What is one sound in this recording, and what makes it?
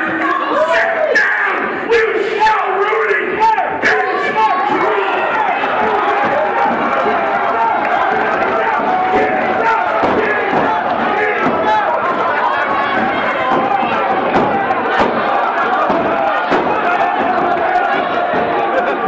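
A crowd of men and women shouts and cheers loudly in a large echoing hall.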